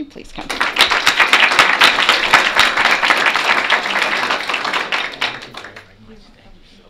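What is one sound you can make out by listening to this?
A crowd claps and applauds loudly in a large room.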